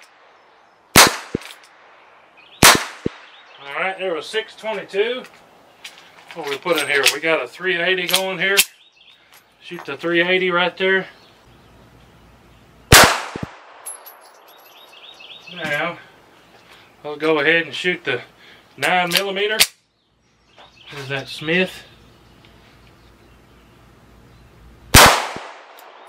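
Pistol shots crack loudly outdoors, one at a time.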